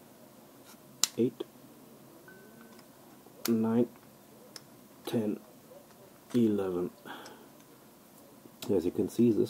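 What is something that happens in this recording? Plastic puzzle blocks click and snap as they are folded.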